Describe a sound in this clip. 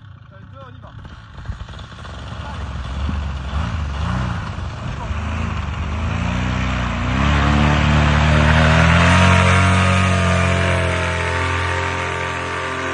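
A paramotor engine starts up and roars loudly, rising in pitch.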